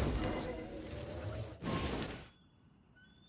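An arrow whooshes as a bow is fired.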